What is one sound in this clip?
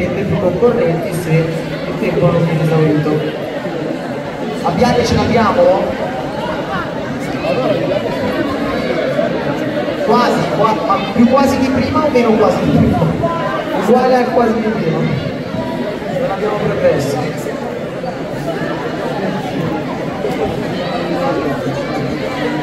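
Children talk and call out in a large echoing hall.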